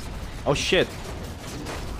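Heavy gunfire blasts in short bursts.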